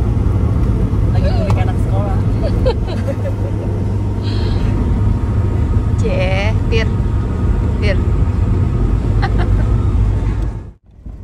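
A woman talks cheerfully close by inside a car.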